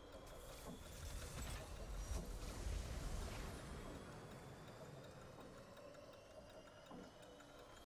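A triumphant game victory fanfare plays with swelling music.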